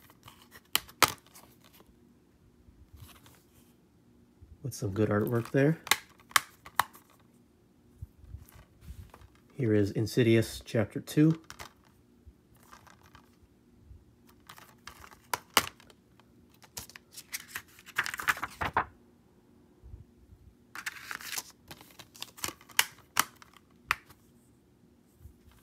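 Plastic cases click and snap open and shut.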